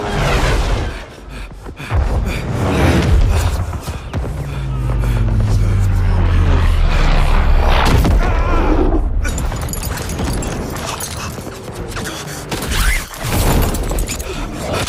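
Explosions boom and crack nearby.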